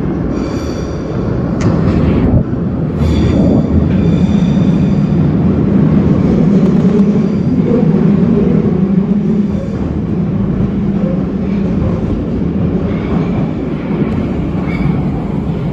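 A train rumbles past close by.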